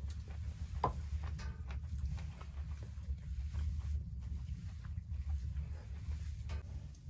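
A wooden fork scrapes and clinks against a metal pan.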